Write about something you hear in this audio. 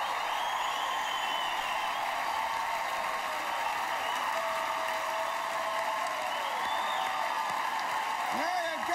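A crowd whoops and shouts excitedly.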